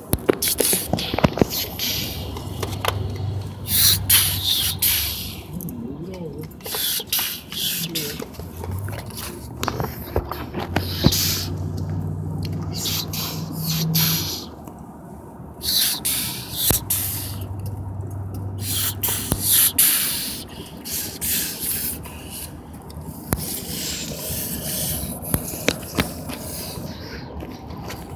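A toy locomotive's wheels rub and scrape across a surface close by.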